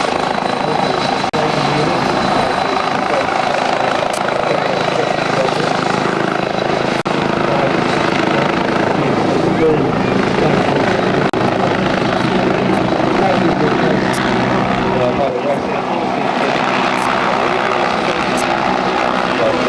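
A helicopter flies overhead, its rotor thudding steadily with a loud engine whine.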